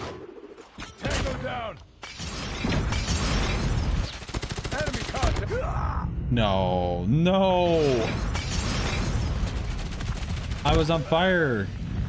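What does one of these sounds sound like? Gunfire and explosions crackle and boom in a game.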